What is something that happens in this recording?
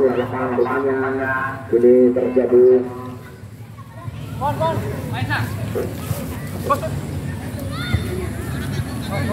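Men shout and call out outdoors.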